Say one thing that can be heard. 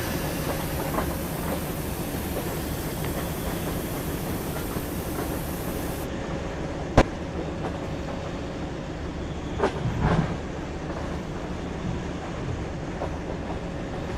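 Train wheels clack over rail joints.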